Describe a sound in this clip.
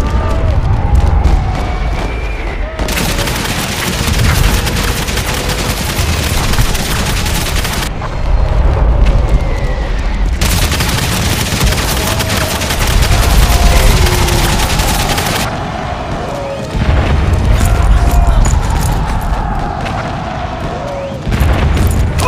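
Gunfire crackles in bursts across a battlefield.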